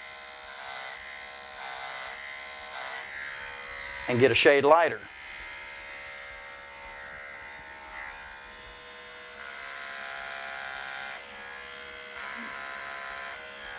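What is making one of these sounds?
Electric hair clippers buzz steadily as they shear through fur.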